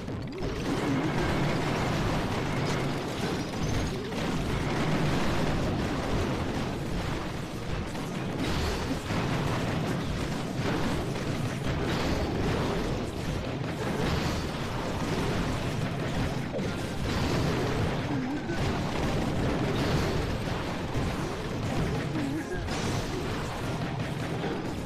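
Explosions boom and crackle in a busy battle, one after another.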